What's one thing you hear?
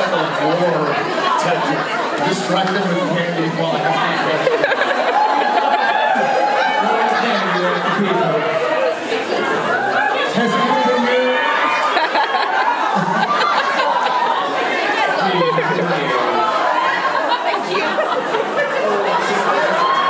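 A crowd cheers and laughs.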